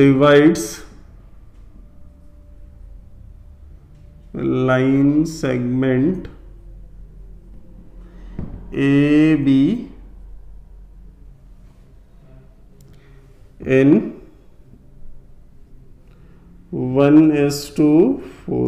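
A man speaks calmly in short phrases, as if explaining, close by.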